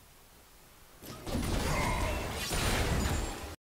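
A magical blast bursts and crackles loudly.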